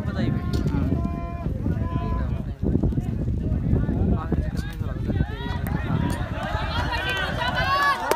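A crowd of young men cheers and shouts outdoors.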